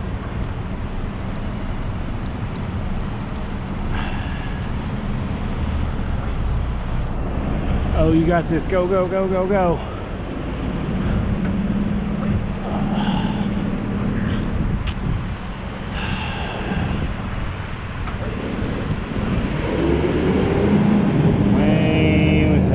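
Wind rushes loudly past the rider outdoors.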